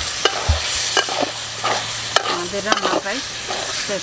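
A metal spoon scrapes and clinks against a pot while stirring.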